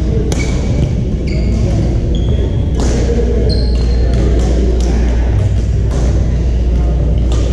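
Paddles strike a plastic ball with sharp pops in a large echoing hall.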